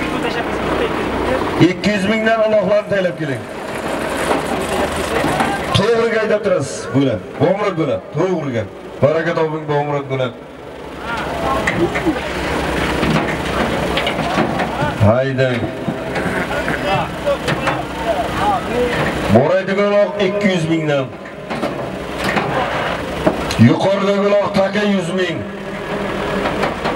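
A tractor engine runs steadily nearby.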